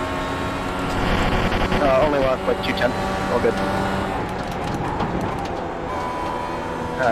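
A racing car engine drops in pitch as the driver brakes and shifts down.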